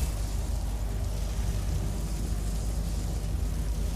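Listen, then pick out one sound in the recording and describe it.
Magic lightning crackles and buzzes.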